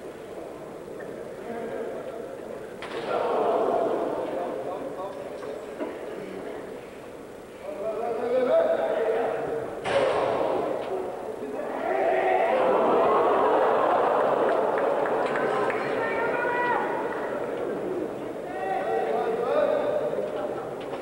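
A large crowd in an echoing hall cheers and shouts.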